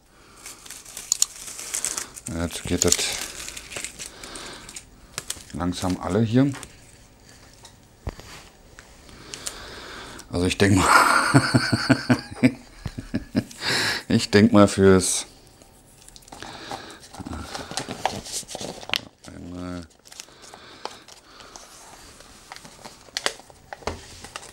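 Plastic packaging rustles and crinkles.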